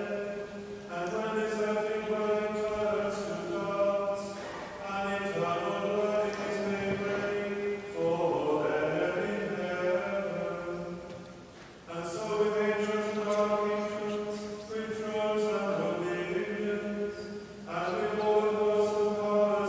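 A congregation of men and women sings a slow hymn together in a large echoing hall.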